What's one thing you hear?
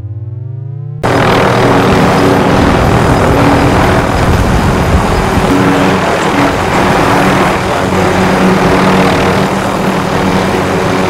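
A helicopter's rotors roar steadily close by.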